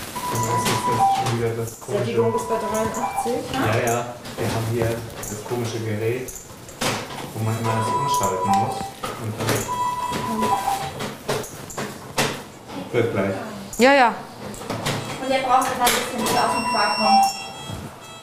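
A medical monitor beeps repeatedly in a steady pattern.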